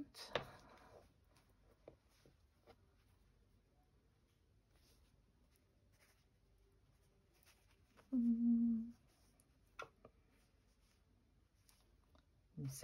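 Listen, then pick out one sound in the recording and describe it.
Fabric rustles softly as hands handle and stitch it.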